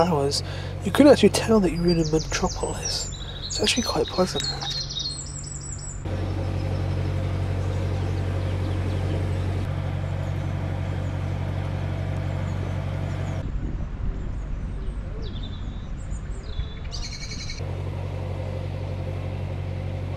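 A boat engine chugs with a low, steady hum.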